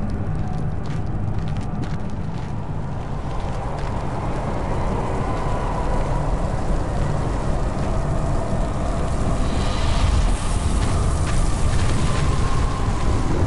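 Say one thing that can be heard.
A fire roars and crackles nearby.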